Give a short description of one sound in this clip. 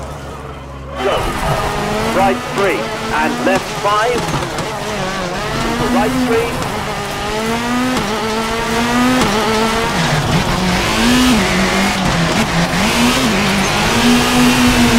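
A rally car engine revs hard and shifts gears as the car races along.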